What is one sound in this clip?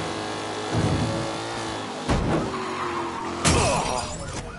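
A car engine revs as the car drives.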